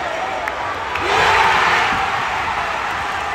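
A crowd roars loudly as a rally ends.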